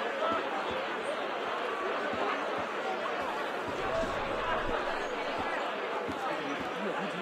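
Footsteps tread on cobblestones.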